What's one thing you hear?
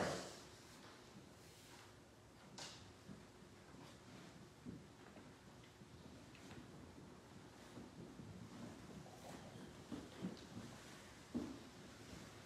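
A small crowd murmurs greetings quietly.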